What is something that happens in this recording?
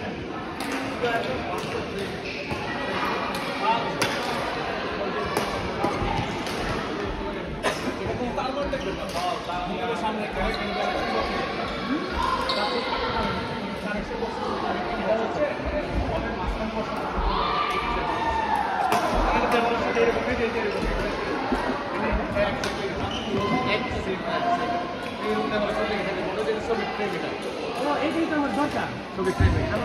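Shoes squeak and thud on a court floor.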